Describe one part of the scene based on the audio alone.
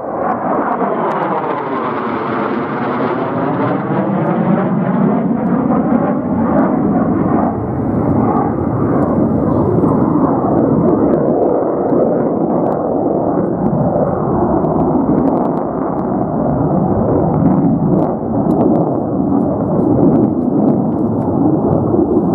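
A jet engine roars loudly overhead, its pitch sweeping as the jet passes and then rumbling on in the distance.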